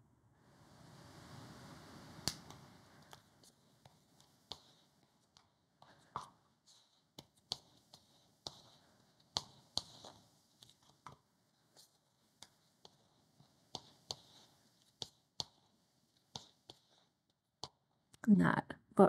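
A spatula scrapes and taps against the inside of a plastic bowl.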